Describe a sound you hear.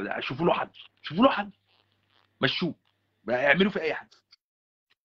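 A man talks over an online call.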